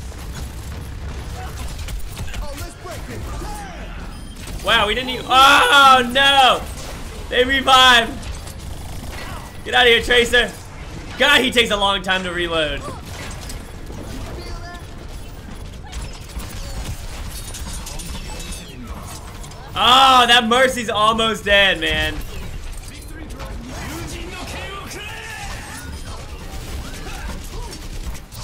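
Gunfire and blasts from a video game rattle on.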